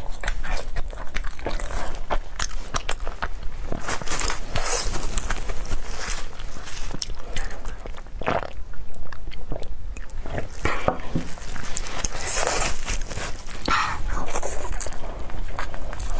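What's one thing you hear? A young woman bites into crisp fried dumplings with a crunch.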